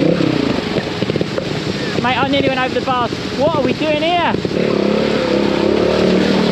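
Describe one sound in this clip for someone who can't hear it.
A motorbike engine revs and idles close by.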